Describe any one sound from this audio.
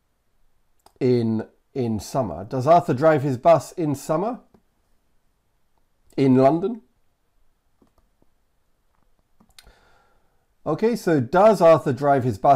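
A man speaks clearly and calmly into a close microphone, pausing now and then.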